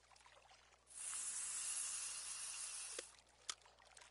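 A fishing line whirs out fast as a rod is cast.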